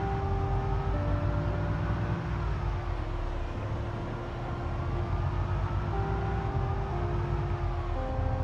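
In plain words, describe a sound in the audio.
A van engine rumbles steadily as it drives along a road.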